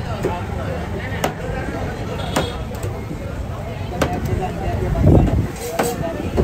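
A knife slices through raw fish flesh on a wooden board.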